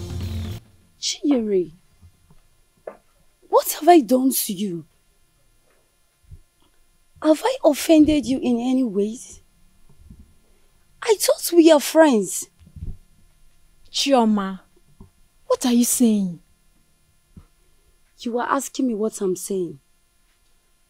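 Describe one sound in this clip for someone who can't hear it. A woman speaks calmly nearby in short exchanges.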